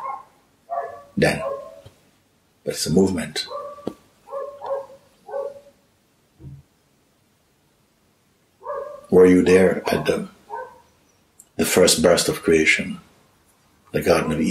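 An elderly man speaks calmly and thoughtfully close to a microphone, with pauses.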